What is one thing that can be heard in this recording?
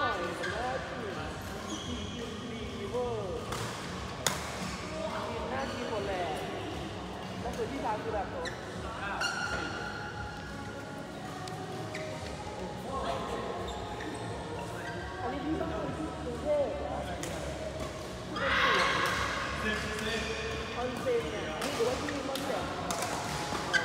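Rackets strike a shuttlecock with sharp pops.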